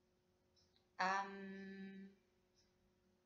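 A young woman close by sings one long, steady note, then stops.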